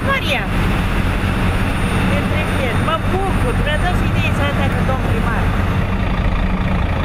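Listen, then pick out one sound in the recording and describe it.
An elderly woman speaks.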